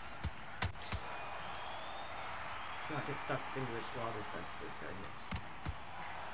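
A crowd cheers loudly.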